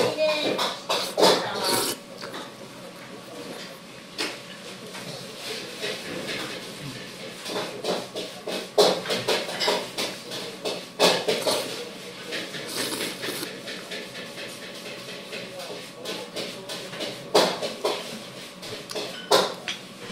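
A man slurps noodles loudly, close by.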